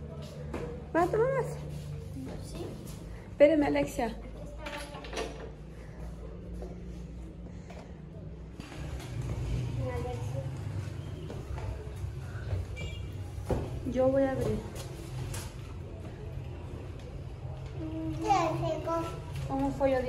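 A young girl talks close by, in short bursts.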